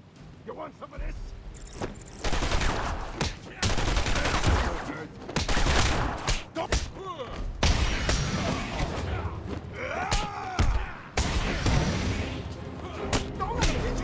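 Heavy punches and kicks thud rapidly in a brawl.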